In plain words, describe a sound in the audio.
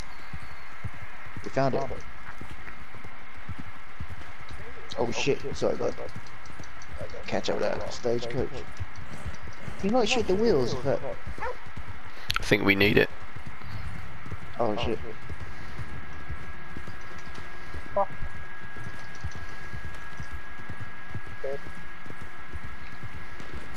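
A horse gallops, its hooves pounding steadily on the ground.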